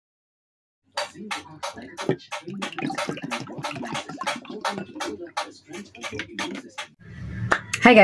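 A drink pours and fizzes into a glass.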